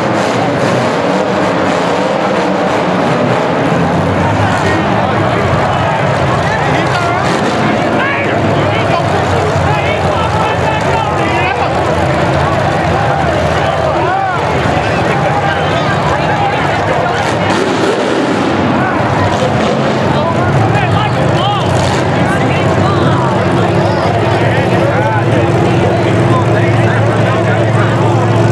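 A large crowd cheers and shouts throughout.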